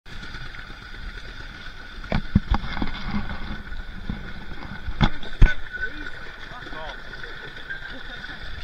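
Water laps and splashes against a small boat.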